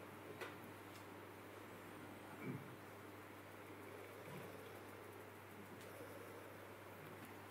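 A woman sobs quietly close by.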